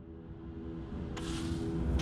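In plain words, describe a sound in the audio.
Glass shatters with a crash.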